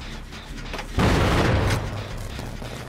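A machine clanks and rattles loudly for a moment.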